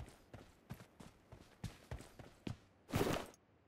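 Footsteps patter on the ground.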